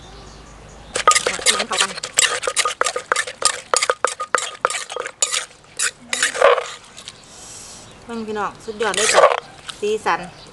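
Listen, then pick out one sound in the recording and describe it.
A wooden pestle and a metal spoon knock and scrape in a clay mortar.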